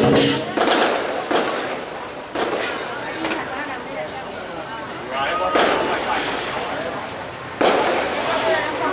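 A crowd of men and women chatter and call out outdoors.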